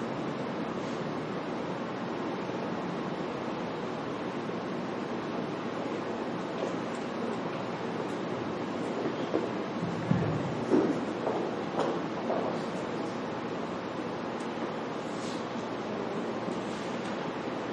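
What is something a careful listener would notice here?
A seated crowd murmurs quietly in a room.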